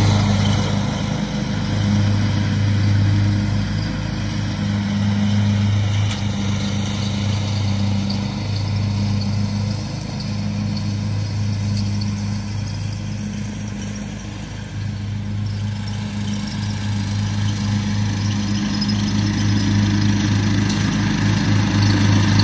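A riding lawn mower engine drones steadily nearby, growing louder as it approaches.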